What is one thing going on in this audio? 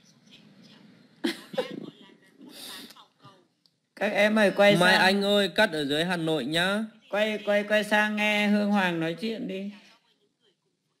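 A man talks close to the microphone.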